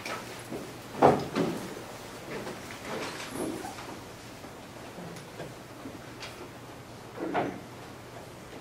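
A man speaks in a large room with some echo.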